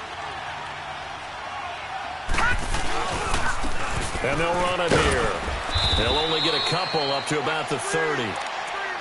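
A large crowd cheers and roars steadily in a stadium.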